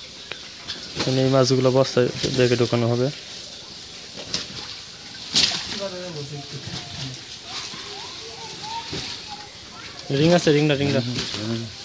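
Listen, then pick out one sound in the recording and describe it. A plastic sheet rustles.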